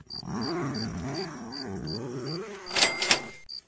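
A tent zipper is pulled open.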